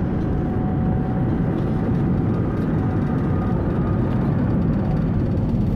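Jet engines roar steadily, heard from inside.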